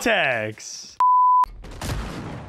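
A short, steady, high electronic beep sounds.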